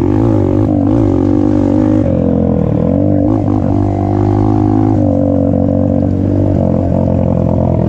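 A dirt bike engine revs and buzzes loudly up close, rising and falling as it shifts gears.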